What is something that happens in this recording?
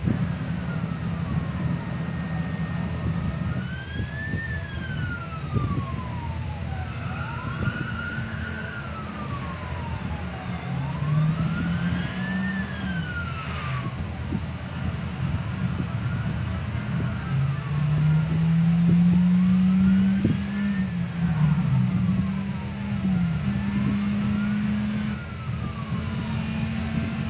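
A siren wails, rising and falling over and over.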